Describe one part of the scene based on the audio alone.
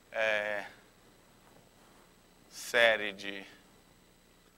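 A man speaks calmly in short bursts, as if lecturing.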